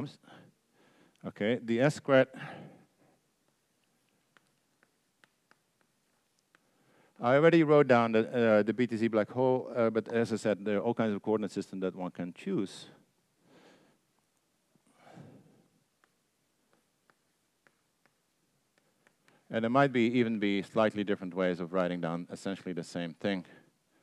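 An elderly man lectures calmly into a microphone, with pauses.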